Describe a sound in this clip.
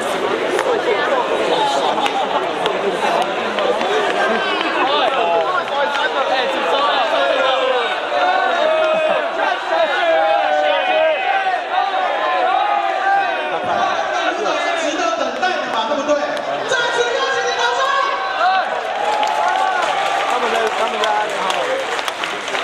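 A large crowd chants and cheers loudly outdoors.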